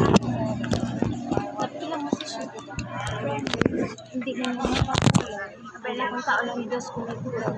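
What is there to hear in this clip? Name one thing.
Several women talk and chatter close by outdoors.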